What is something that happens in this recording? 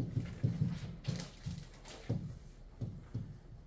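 A marker squeaks on a board.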